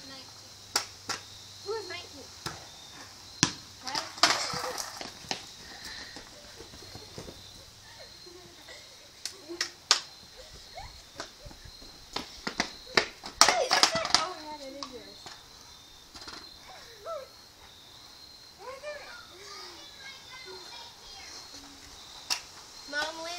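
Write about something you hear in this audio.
Skateboard wheels roll over pavement.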